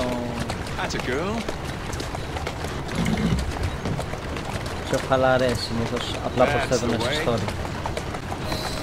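Horse hooves clop on a stone street.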